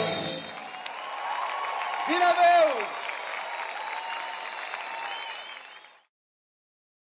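A band plays live music through loudspeakers in a large open-air venue.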